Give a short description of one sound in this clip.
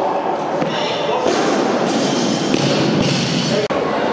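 A loaded barbell drops onto a wooden platform with a heavy thud.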